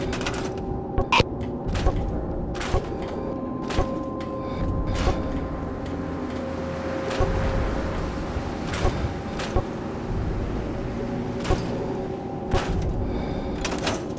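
Short sharp clicks sound again and again.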